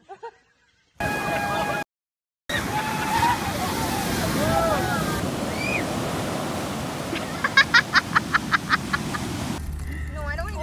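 Waves crash and surf roars.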